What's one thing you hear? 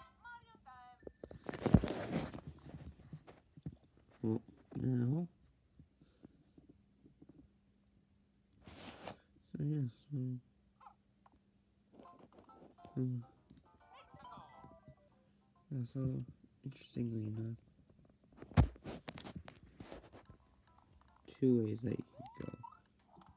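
A handheld game console plays short tunes and sound effects through its small speaker.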